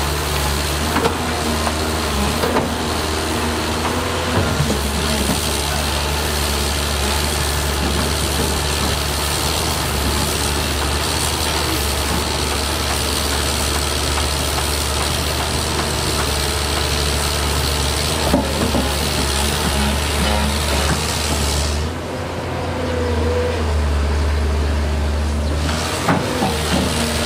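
Metal clanks and knocks as an excavator bucket moves.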